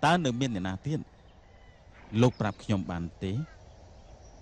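A middle-aged man speaks close by, earnestly.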